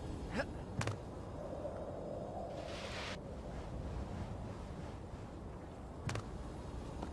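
A figure lands on a ledge with sharp thuds.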